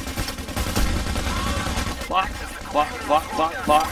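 A pistol fires single sharp shots.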